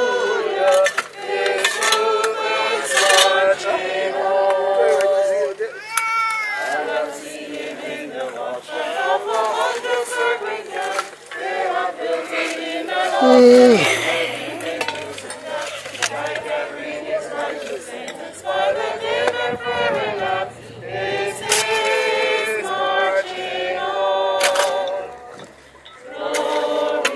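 Shovels scrape and dig into gravel.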